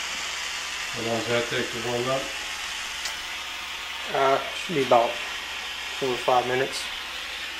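A man speaks calmly nearby.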